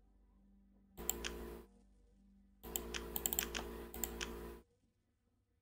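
A game menu chimes and clicks as items are picked.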